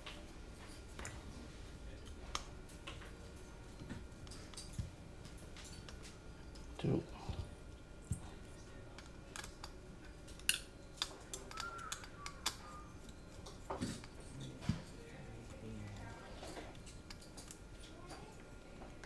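Small plastic and metal parts click and tap as a screwdriver works on them.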